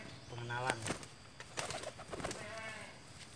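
A pigeon flaps its wings.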